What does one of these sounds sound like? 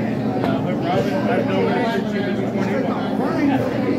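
Pool balls click together.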